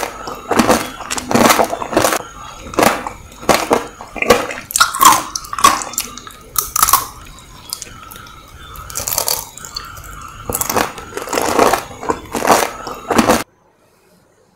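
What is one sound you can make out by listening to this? A woman makes wet smacking and sucking sounds with her lips close to a microphone.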